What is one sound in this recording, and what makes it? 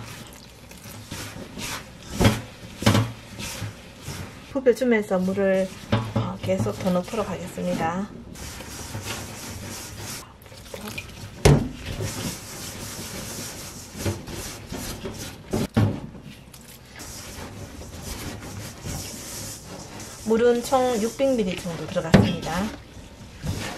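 Hands squish and knead damp dough.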